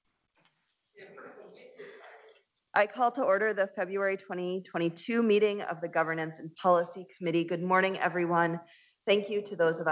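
A woman speaks calmly into a microphone, heard over an online call.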